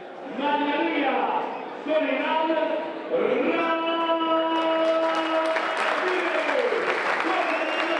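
A man announces through a loudspeaker.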